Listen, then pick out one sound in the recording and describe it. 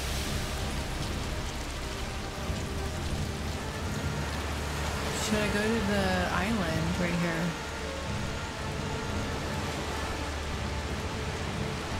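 Waves wash and roar on a shore.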